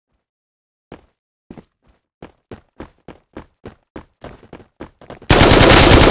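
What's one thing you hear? Footsteps patter on hard ground.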